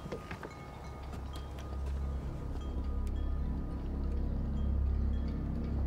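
A door handle rattles and clicks.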